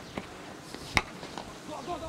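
A cricket bat strikes a ball with a sharp crack outdoors.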